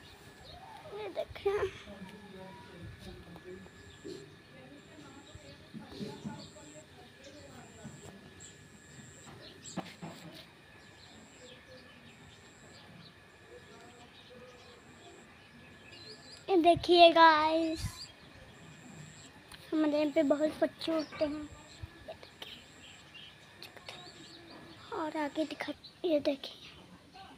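A young girl speaks close to the microphone in short bursts.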